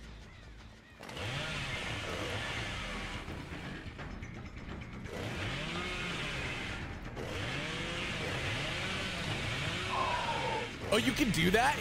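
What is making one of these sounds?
A chainsaw engine revs loudly.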